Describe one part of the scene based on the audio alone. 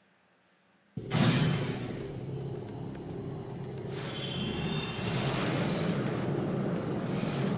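Fantasy battle sounds of clashing weapons and crackling spells play loudly.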